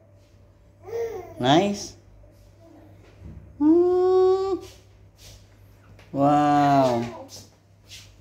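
A toddler squeals and babbles in high, sing-song cries.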